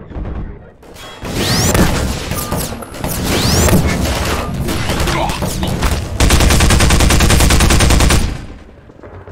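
A submachine gun fires loud rapid bursts.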